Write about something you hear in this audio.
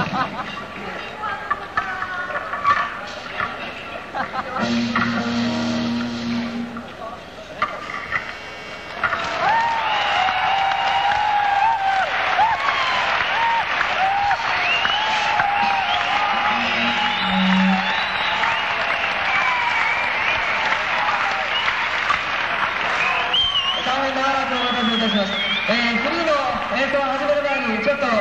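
An electric guitar plays loudly through an amplifier.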